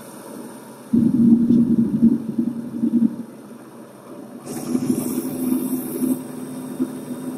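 A heavy truck engine rumbles and drones.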